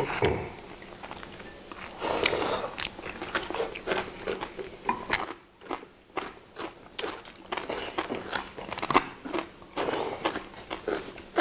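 Chopsticks click against bowls and plates.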